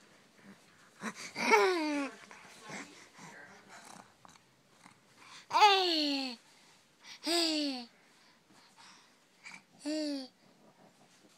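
A toddler cries out in short, falling wails close by.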